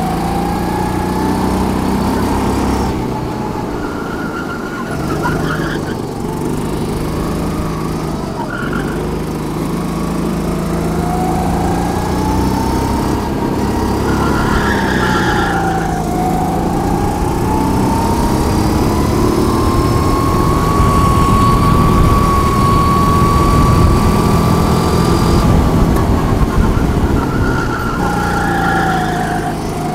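A small kart engine revs up and down close by, rising and falling as it speeds along and slows into bends.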